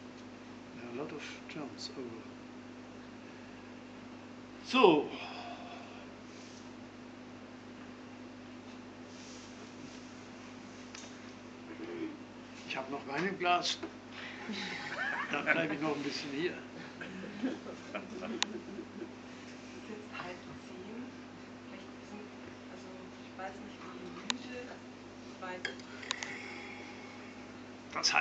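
An elderly man talks nearby in bursts.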